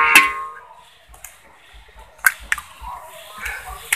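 An egg cracks.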